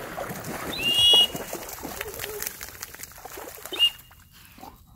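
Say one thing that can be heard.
A large dog splashes as it wades through shallow water.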